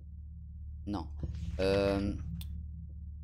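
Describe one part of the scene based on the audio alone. A man speaks briefly with animation into a close microphone.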